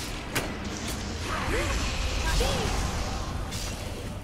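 A magic blast bursts with a rushing whoosh.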